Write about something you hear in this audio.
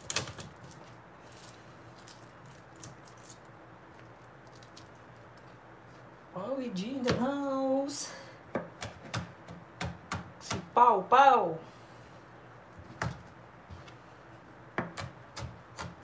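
A knife chops on a cutting board with quick taps.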